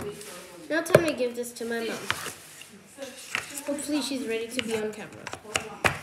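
Cardboard boxes slide and tap on a wooden table.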